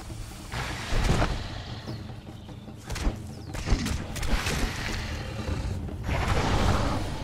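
A blade strikes a beast with heavy thuds.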